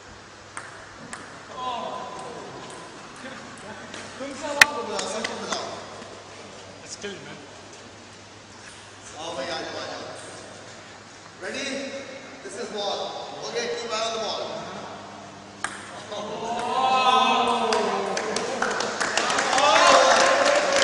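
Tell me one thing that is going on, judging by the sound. A ping-pong ball clicks on a table and paddles.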